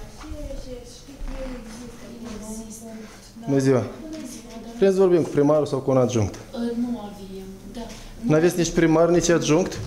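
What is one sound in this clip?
A woman talks with animation nearby in a room.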